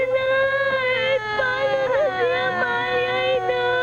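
Two young girls wail and sob loudly, close by.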